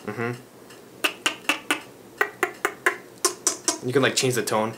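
A young man makes quick popping sounds with his lips.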